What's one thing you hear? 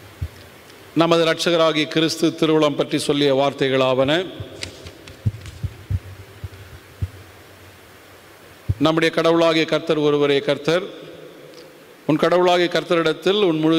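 A man chants in long held tones through a microphone, in phrases with pauses between them.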